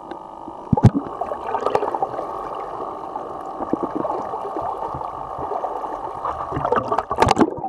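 Small waves lap and splash at the surface.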